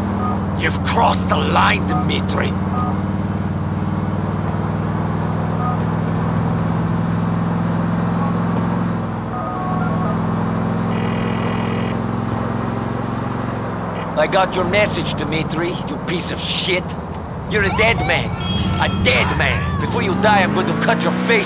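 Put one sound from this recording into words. A car engine drones steadily and shifts pitch as the car speeds up.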